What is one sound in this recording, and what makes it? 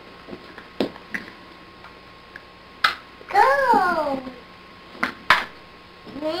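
Plastic toy shapes clack and knock together.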